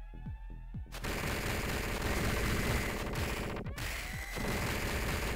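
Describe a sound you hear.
Punches land with sharp thuds in a video game fight.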